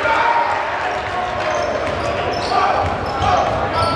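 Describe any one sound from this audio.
A basketball bounces on the hardwood floor.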